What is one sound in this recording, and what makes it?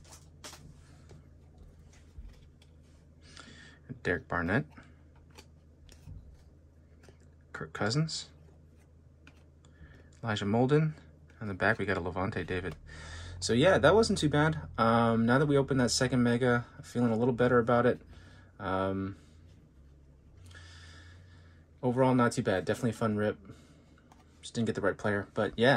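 Stiff trading cards slide and click against each other in hands.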